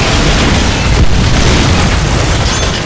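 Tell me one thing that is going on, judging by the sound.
A large explosion roars nearby.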